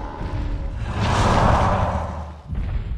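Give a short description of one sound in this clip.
A huge creature lets out a deep, loud bellow.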